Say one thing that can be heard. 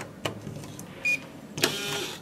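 An electronic door lock beeps once.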